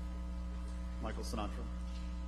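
A man in the audience speaks into a microphone.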